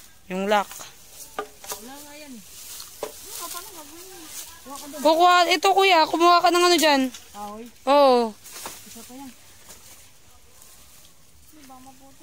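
A young boy talks loudly and with animation close by.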